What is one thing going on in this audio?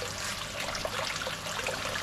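Water splashes softly as fish stir at the surface of a tank.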